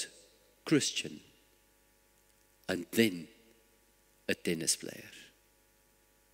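An elderly man speaks slowly and deliberately through a microphone, with pauses between phrases.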